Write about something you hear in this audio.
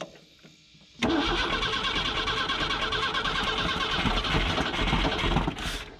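A car engine runs loudly.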